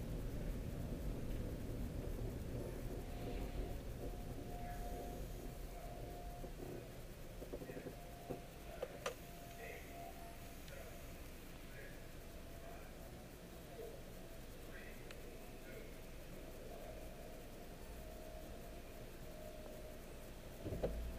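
A car engine hums steadily from inside the car as it rolls slowly forward.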